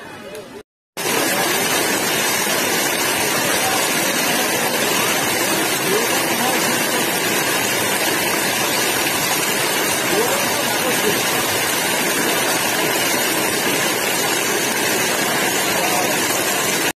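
Shallow water rushes and laps over concrete close by.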